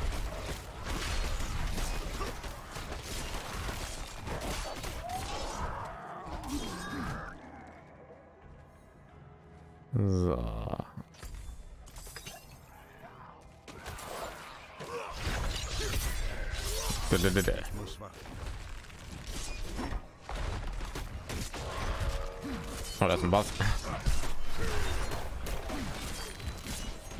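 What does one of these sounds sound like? Spells and weapons clash loudly in a fight with monsters.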